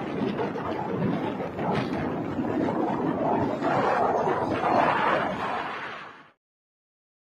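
A jet plane roars overhead.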